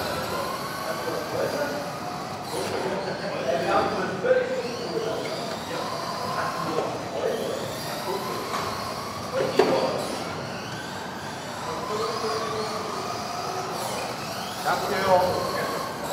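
Electric radio-controlled buggies whine as they race around a track in a large echoing hall.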